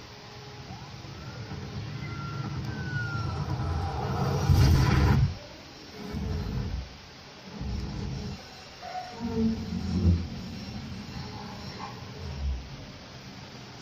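Deep booming bass thumps from a loudspeaker.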